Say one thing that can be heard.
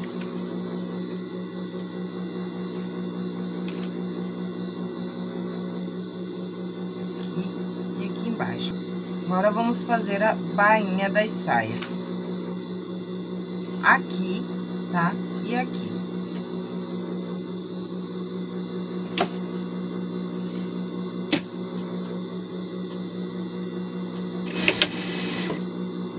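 A sewing machine motor hums steadily.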